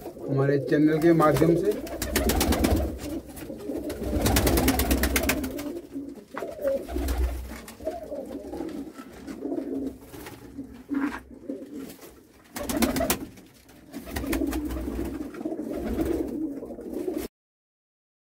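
Pigeons coo softly and steadily.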